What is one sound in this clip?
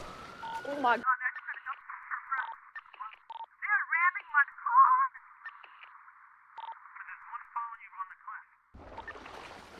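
Sounds turn muffled and bubbling underwater.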